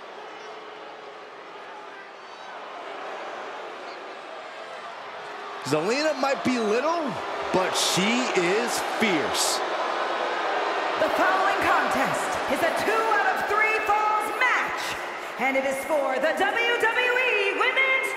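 A large arena crowd cheers and roars.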